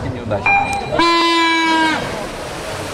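An electronic start beep sounds for about a second.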